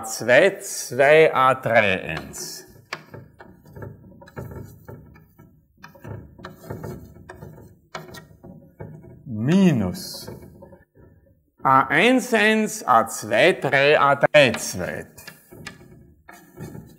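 Chalk taps and scrapes on a board.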